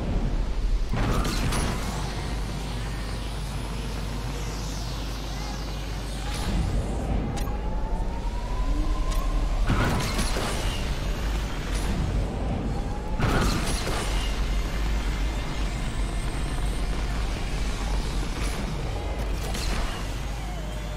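Loud whooshing bursts sweep past as a car boosts.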